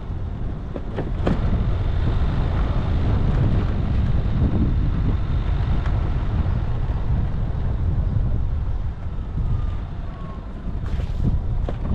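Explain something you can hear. A vehicle rattles and knocks over bumps.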